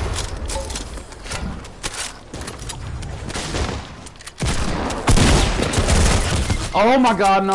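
Quick knocks and clatters of walls being built in a game sound in rapid bursts.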